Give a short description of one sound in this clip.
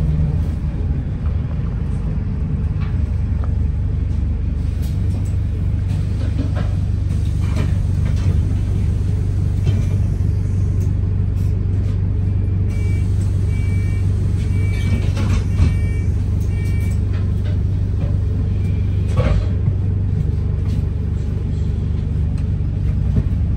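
A bus engine hums low and steady while the bus drives.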